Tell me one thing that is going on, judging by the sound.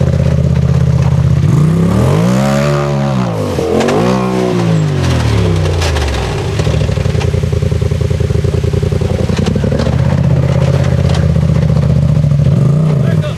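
Tyres crunch and scrape over rock and dirt.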